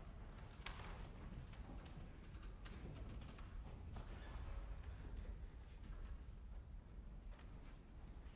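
Footsteps tap softly on wooden boards.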